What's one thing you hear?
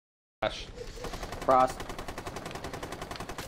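A rapid burst of gunfire rattles steadily.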